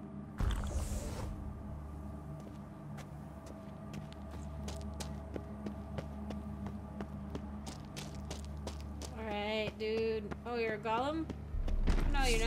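Footsteps echo through a cave.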